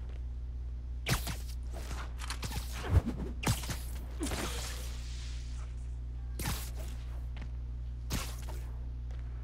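Webs shoot out with sharp, swishing zips.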